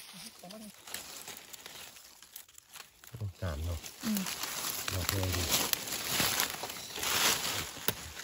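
A knife slices through a mushroom stem.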